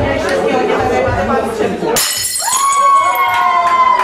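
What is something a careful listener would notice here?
A plate smashes on a hard floor.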